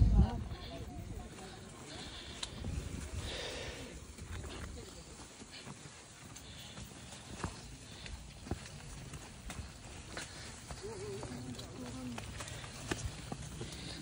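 Footsteps crunch through dry grass and undergrowth.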